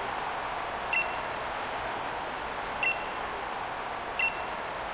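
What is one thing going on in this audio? Soft electronic blips sound as dialogue text advances.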